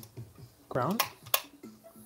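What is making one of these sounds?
A toggle switch clicks.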